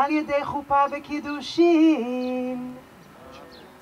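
A woman chants a blessing aloud.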